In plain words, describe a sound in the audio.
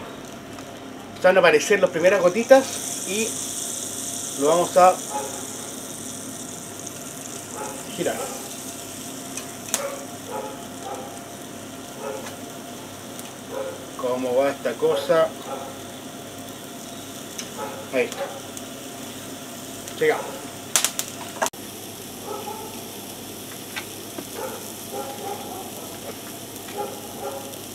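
Meat sizzles on a grill.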